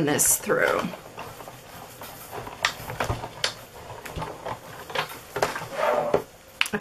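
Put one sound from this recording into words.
A hand crank on a die-cutting machine turns with a ratcheting rattle.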